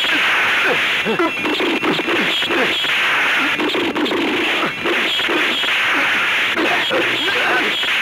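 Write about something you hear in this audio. Guns fire in sharp bursts.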